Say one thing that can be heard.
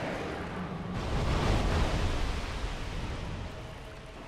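A huge creature thuds down with a deep, loud rumble.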